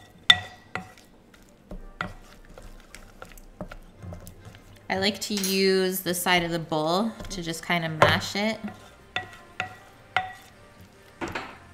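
A spoon clinks and scrapes against a ceramic bowl while stirring.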